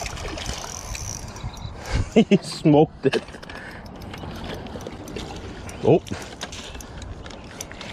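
A fish splashes in the water close by.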